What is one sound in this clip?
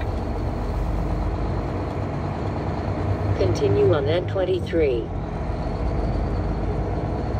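A car's tyres rumble steadily on the road.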